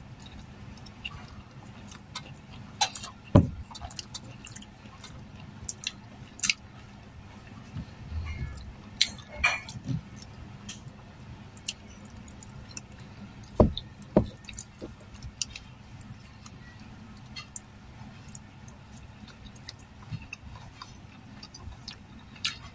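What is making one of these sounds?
A woman chews and smacks her lips close up.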